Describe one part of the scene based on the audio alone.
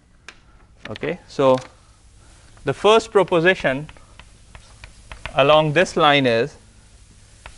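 A man lectures calmly, speaking in short bursts.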